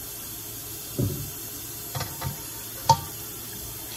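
A wooden cutting board knocks down onto a stove.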